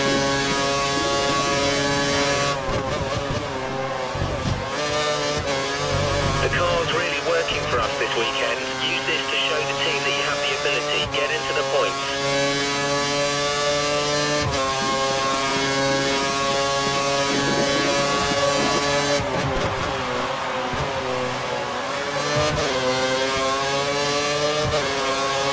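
A racing car engine screams at high revs, its pitch falling and rising through the gear changes.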